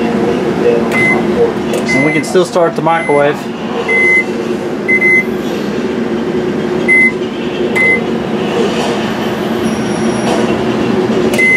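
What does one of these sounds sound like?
A microwave beeps with short high tones as its buttons are pressed.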